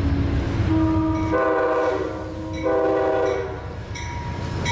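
A train horn blares loudly in long blasts.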